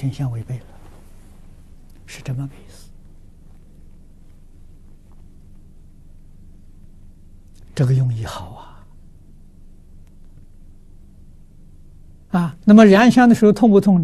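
An elderly man speaks calmly in short phrases with pauses, close to a microphone.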